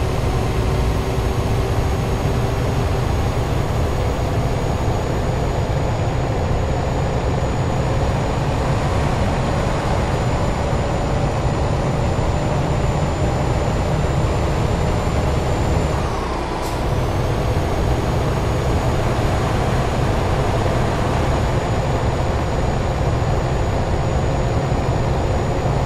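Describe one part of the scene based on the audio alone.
A truck engine drones steadily at speed.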